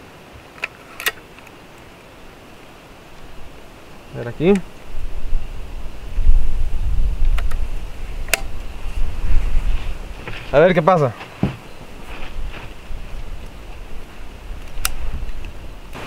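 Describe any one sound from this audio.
Metal clicks as an air rifle is loaded.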